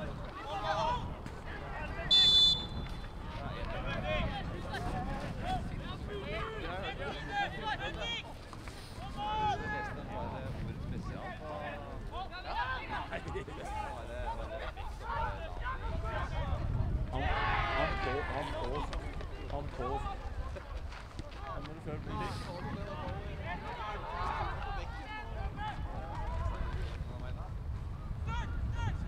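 Men shout and call out across an open pitch outdoors.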